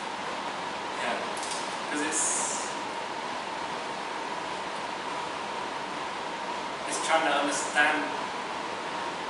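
A man speaks quietly in a room.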